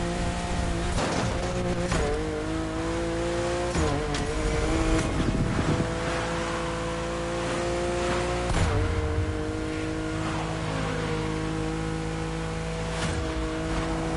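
Exhaust pops and bangs crackle from a car.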